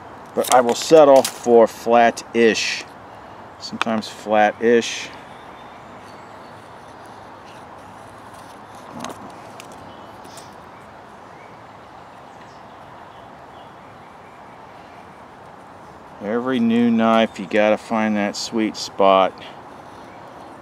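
A knife shaves and scrapes softly along a stick of wood.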